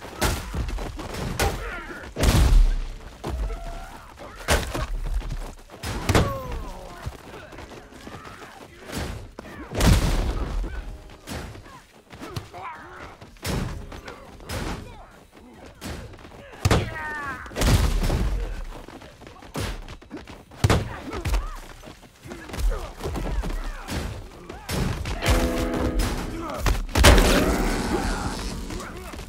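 Heavy blows thud and splatter against bodies again and again.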